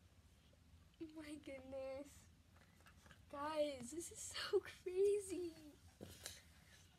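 A young girl giggles.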